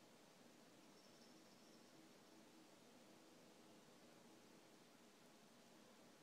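A cat licks its fur with soft, wet sounds.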